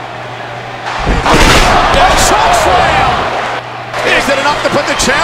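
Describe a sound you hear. Bodies crash and scuffle against a mattress.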